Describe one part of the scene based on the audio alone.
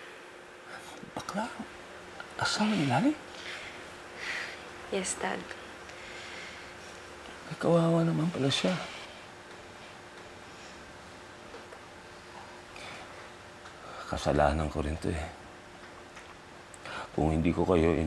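A middle-aged man speaks in a low, strained voice close by.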